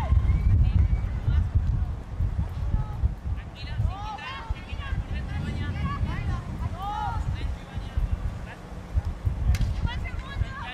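Young women shout to each other across an open outdoor pitch.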